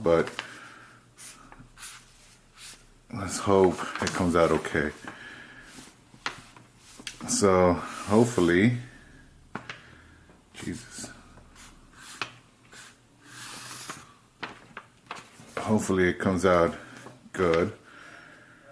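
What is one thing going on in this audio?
A marker squeaks and scratches across paper.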